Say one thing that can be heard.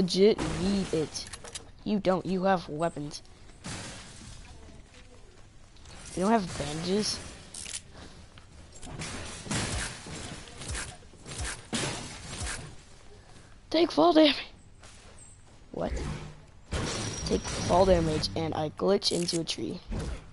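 Game sound effects clatter and thump.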